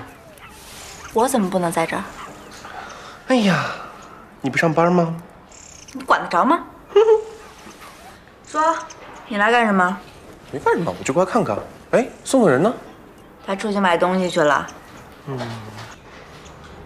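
A young woman speaks with attitude, close by.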